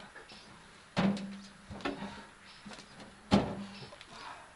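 Concrete blocks thud and scrape as they are dropped into a metal wheelbarrow.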